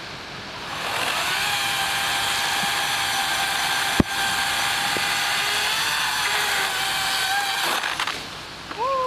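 A chainsaw runs with a steady whine.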